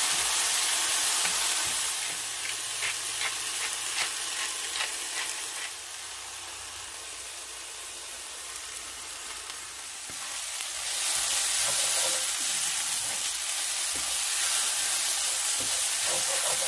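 A wooden spatula scrapes and stirs against a pan.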